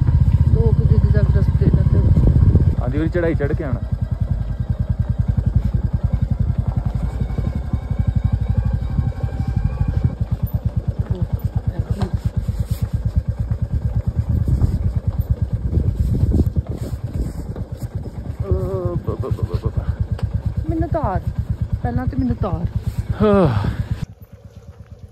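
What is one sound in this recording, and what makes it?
A motorcycle engine thumps steadily close by.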